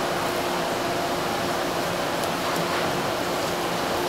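A knife slices softly through raw fish.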